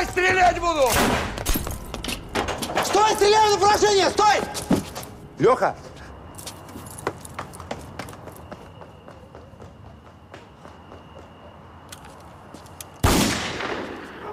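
Gunshots ring out loudly.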